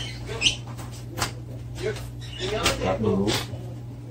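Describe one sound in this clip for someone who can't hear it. A knife pokes and tears through crinkling plastic wrap.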